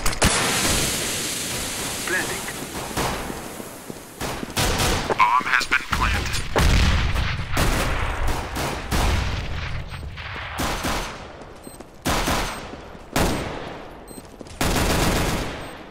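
Smoke grenades hiss loudly as smoke pours out.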